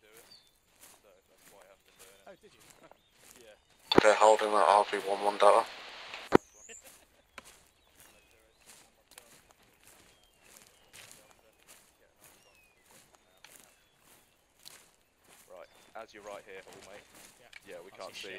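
Footsteps rustle steadily through leaves and undergrowth.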